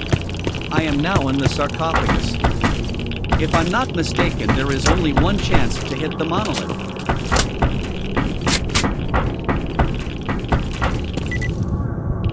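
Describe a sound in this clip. Footsteps echo along a hard tunnel floor.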